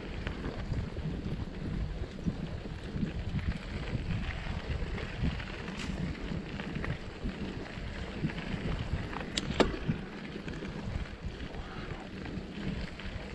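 A bicycle rattles and clicks over bumps.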